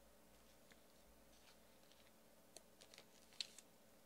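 Trading cards rustle and tap softly as they are handled.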